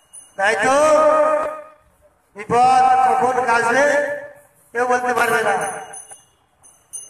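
A man sings loudly in long, drawn-out phrases close by.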